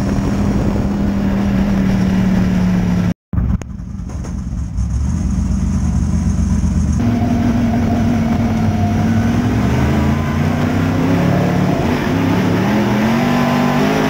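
A race car engine roars loudly up close, its pitch rising and falling.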